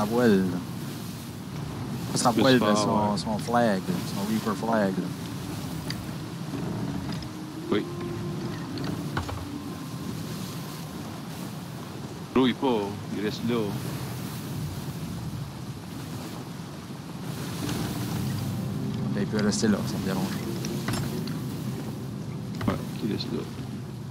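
Rough waves crash and wash against a wooden ship.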